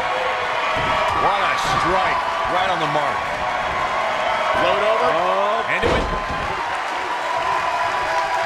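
A large crowd cheers and shouts steadily in a big arena.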